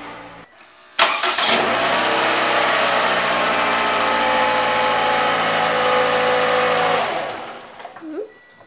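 A car engine starts and runs with a steady hum.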